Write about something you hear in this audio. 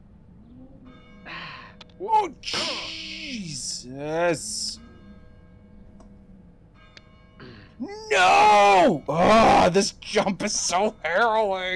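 A young man talks into a close microphone, growing loud and excited and shouting at times.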